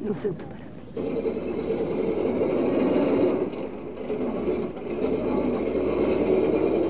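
A metal crane topples and crashes down with a rumbling clatter.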